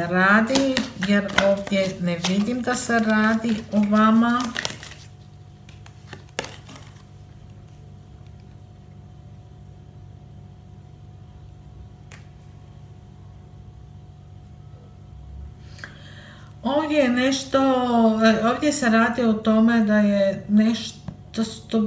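Playing cards rustle and flick softly as they are shuffled by hand.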